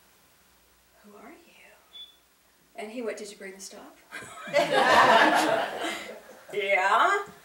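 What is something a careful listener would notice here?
A middle-aged woman speaks emotionally into a microphone.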